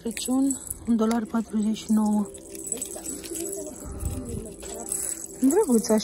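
Small metal bells jingle softly in a hand.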